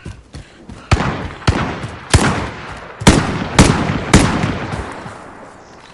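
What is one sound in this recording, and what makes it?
Gunshots fire in quick bursts, each one booming and echoing away.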